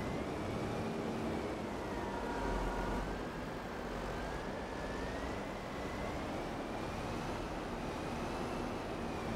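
A heavy diesel engine rumbles steadily and whines as it drives.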